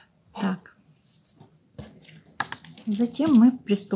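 Stiff paper rustles as a hand presses it against a table.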